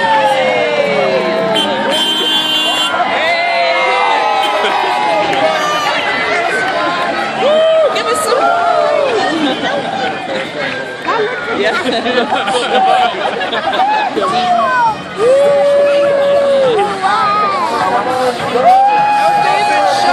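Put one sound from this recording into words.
A large outdoor crowd cheers and shouts.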